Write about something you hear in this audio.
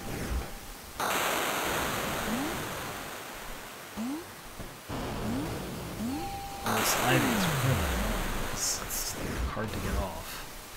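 Rain falls with a steady hiss.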